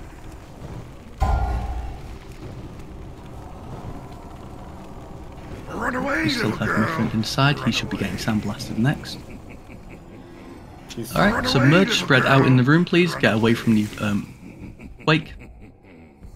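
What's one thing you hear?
Magic spells crackle and boom amid a battle.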